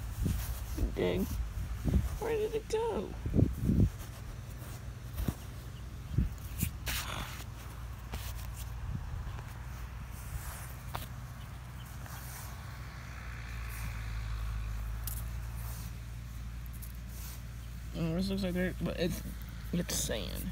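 Loose soil crumbles and rustles under a hand.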